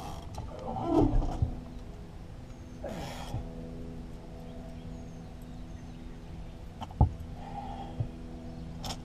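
Something knocks against a metal boat hull.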